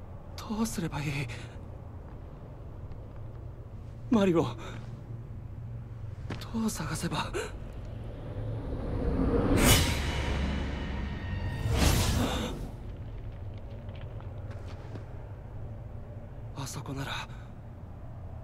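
A young man speaks quietly in short phrases.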